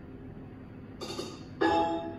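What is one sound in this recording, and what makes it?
A slot machine plays a loud jingle for a win.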